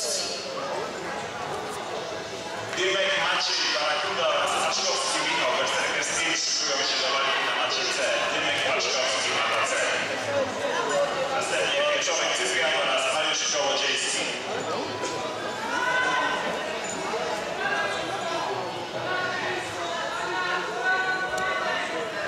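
Spectators and coaches shout encouragement in a large echoing hall.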